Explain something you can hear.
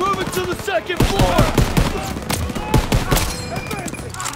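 A rifle fires several loud shots close by.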